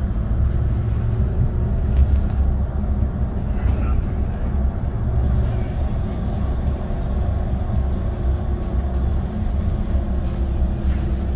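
A vehicle rumbles low and steady as it rolls along a street.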